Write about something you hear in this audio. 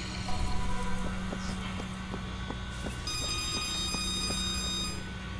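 Footsteps run quickly across a hard surface.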